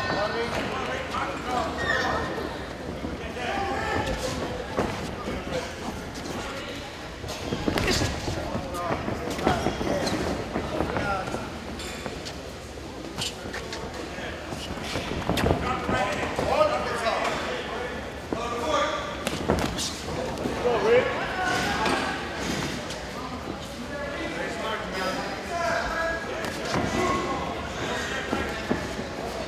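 A crowd in a large echoing hall talks and shouts.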